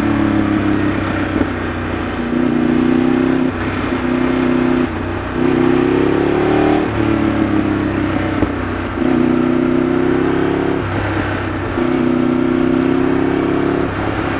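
A Ducati V-twin sport bike engine pulls and eases off along a winding road.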